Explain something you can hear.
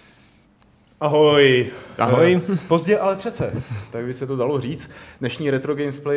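A young man speaks casually close to a microphone.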